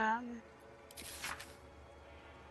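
A page of a book turns with a papery rustle.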